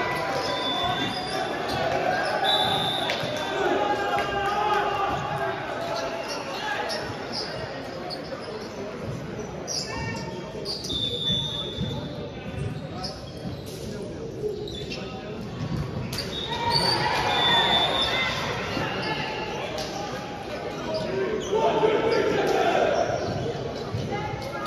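Many players talk and call out in a large echoing hall.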